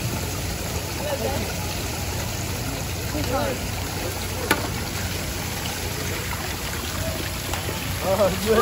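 Children talk and call out nearby, outdoors.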